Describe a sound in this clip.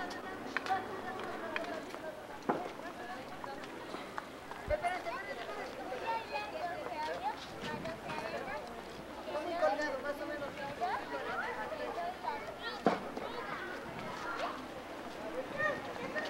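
A crowd of men, women and children chatter outdoors nearby.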